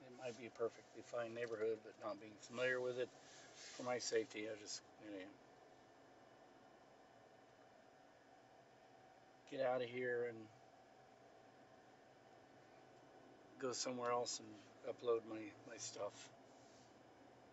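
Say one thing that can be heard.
A middle-aged man talks calmly inside a car.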